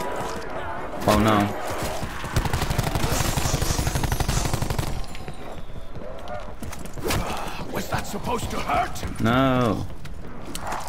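A zombie growls and snarls up close.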